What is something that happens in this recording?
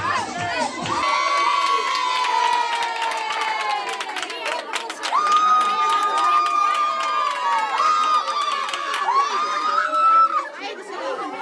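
Women and children sing together loudly.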